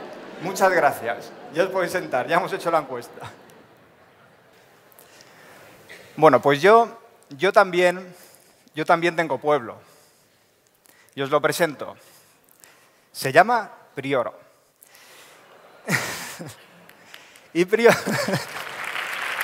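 A man speaks calmly through a microphone in a large hall, pausing between phrases.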